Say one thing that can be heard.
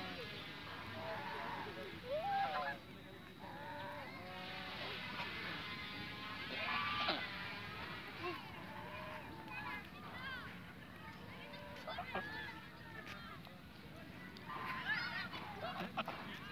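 Geese honk and cackle close by.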